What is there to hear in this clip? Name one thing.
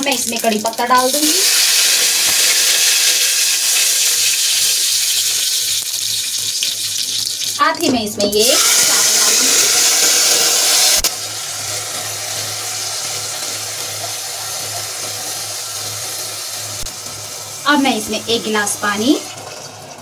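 Hot oil sizzles loudly in a pot.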